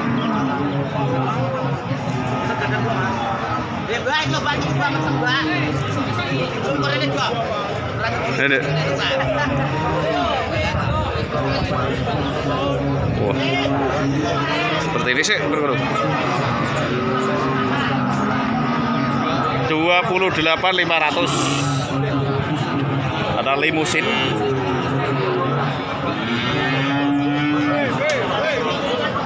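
A crowd of men chatters loudly outdoors.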